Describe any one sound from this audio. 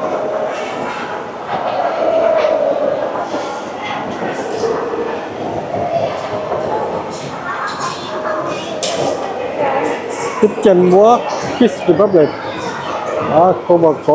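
Many voices murmur and chatter in a large echoing hall.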